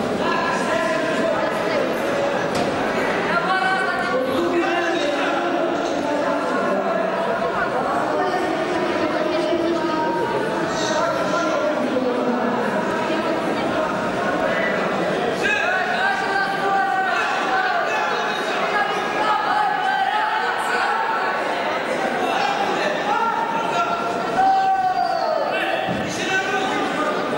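A crowd of spectators talks and shouts throughout a large echoing hall.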